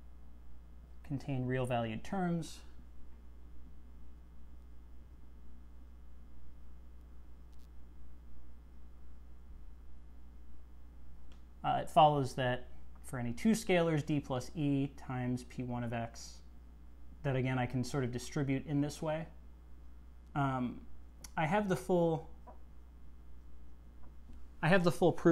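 A man speaks calmly, explaining in short bursts.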